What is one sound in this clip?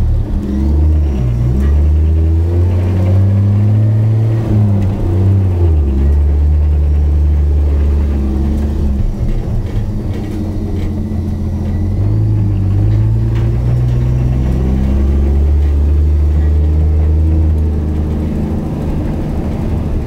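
A car engine rumbles loudly close by, its pitch rising and falling as it revs.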